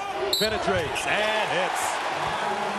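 A crowd roars loudly after a dunk.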